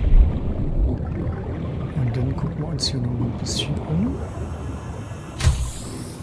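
Water bubbles and gurgles underwater.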